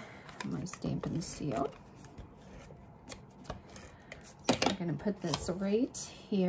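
Paper rustles as it is peeled away and handled.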